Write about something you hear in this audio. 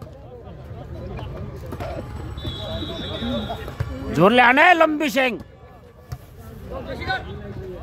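A crowd of spectators chatters and murmurs outdoors.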